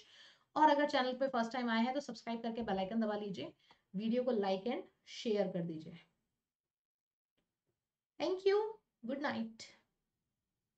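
A young woman speaks calmly into a microphone close by.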